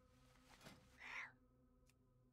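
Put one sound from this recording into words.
A fiery spell bursts with a short whoosh.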